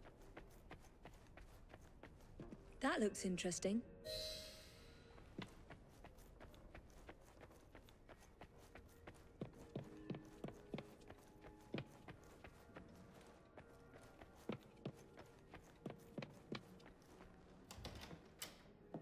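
Footsteps tap softly on wooden floorboards.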